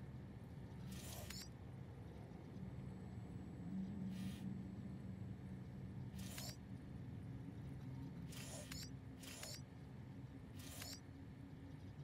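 Short electronic interface chimes sound now and then.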